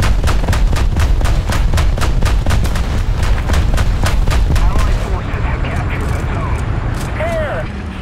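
The engine of a tracked armoured vehicle rumbles.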